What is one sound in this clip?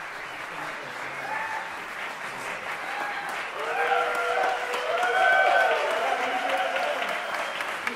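Several men talk casually in a large echoing hall.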